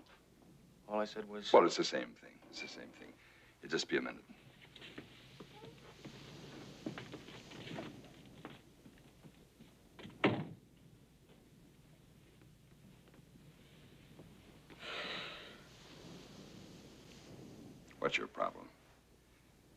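A middle-aged man speaks firmly nearby.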